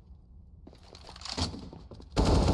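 A rifle fires a sharp shot at close range.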